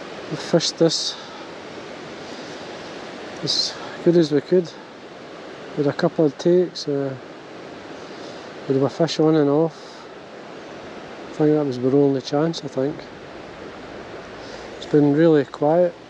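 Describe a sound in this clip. A fishing line is pulled and stripped through fingers with short rasps.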